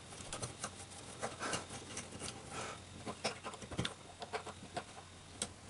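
A metal rod scrapes and clicks against a board as it is pushed through a hole.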